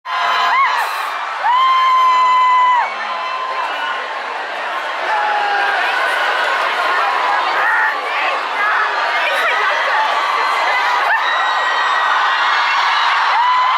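A large crowd cheers and screams in a big echoing arena.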